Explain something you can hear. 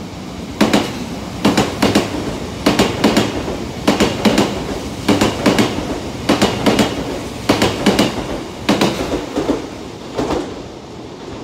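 A train rushes past close by, its wheels clacking in a quick, steady rhythm over the rail joints.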